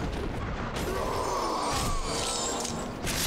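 A magic spell whooshes and shimmers.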